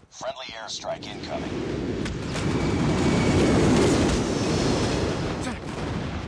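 Explosions boom and rumble heavily.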